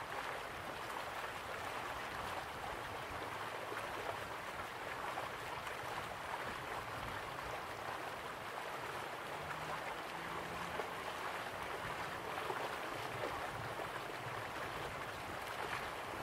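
A waterfall splashes steadily into a pool.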